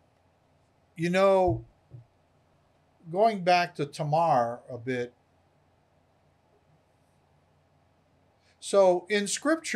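An older man speaks with animation into a microphone, close by.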